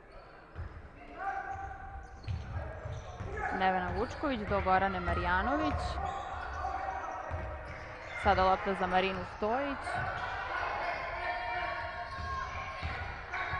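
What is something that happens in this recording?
A basketball bounces on a hard floor in an echoing hall.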